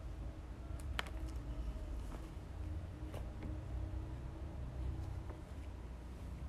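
Heavy cloth rustles and swishes close by.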